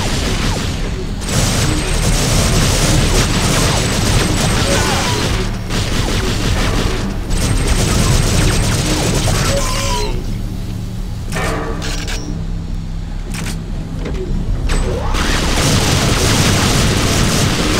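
Rapid gunfire blasts in bursts.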